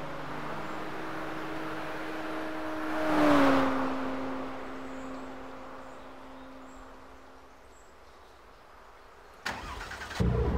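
A car engine idles quietly.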